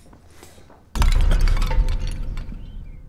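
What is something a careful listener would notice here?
A pottery vase shatters on a hard floor.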